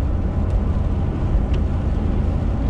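A windshield wiper swipes across the glass once.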